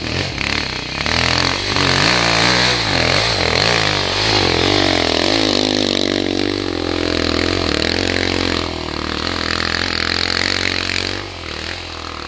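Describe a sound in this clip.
A dirt bike engine revs up loudly close by, rising and falling in pitch.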